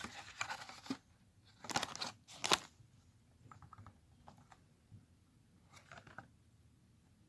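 A plastic case and a paper insert rustle and click as they are handled up close.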